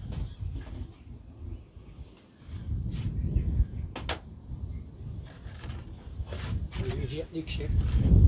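A man moves about and knocks in a doorway nearby.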